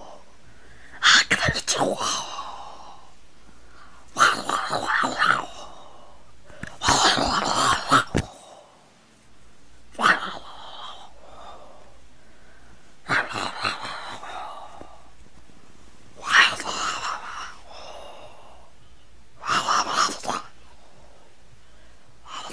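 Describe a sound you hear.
Soft plush toys rustle as they are handled.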